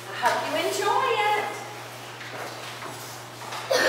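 A woman speaks to a group of children in an echoing room.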